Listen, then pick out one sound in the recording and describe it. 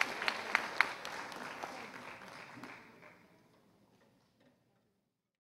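An audience applauds in a large hall, and the clapping fades away.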